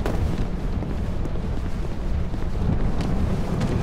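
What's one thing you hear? Footsteps crunch quickly on loose gravel.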